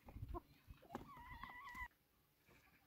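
A hen clucks close by.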